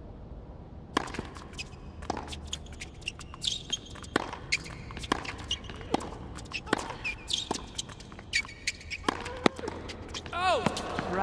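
A tennis racket strikes a ball back and forth in a rally.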